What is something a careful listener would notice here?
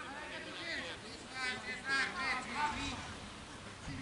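Men shout to each other at a distance outdoors.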